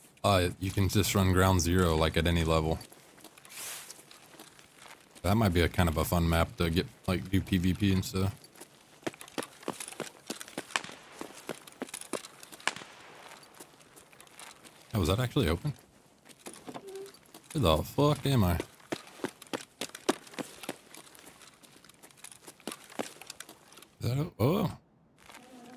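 A young man talks into a close microphone, with animation.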